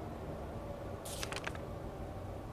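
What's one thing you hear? A sheet of paper rustles as a page flips over.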